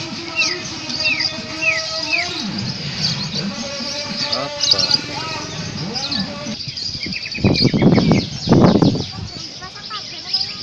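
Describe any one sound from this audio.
Many caged songbirds chirp and whistle outdoors.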